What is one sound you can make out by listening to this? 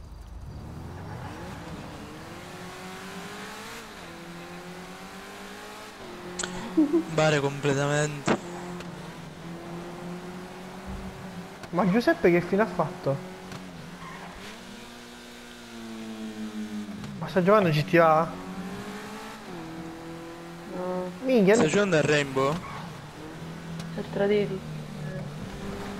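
A car engine hums steadily, rising and falling in pitch as it drives.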